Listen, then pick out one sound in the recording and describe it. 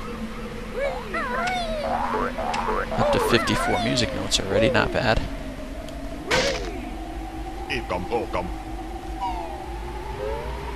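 Cheerful video game music plays with bouncy melodies.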